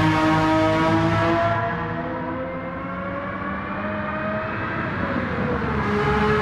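A racing car engine roars at high revs, its pitch shifting as the car passes and changes gear.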